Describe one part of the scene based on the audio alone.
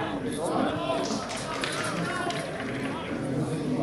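Spectators nearby chatter and call out.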